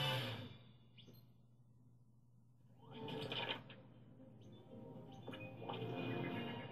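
Video game sound effects chime and whoosh from a television loudspeaker.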